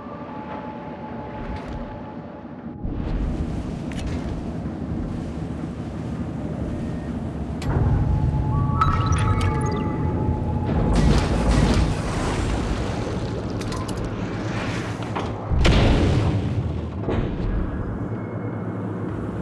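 Heavy waves surge and crash against a submarine's hull.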